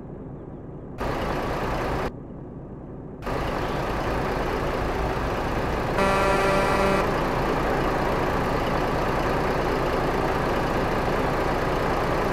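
Tyres roll on a road with a steady rushing noise.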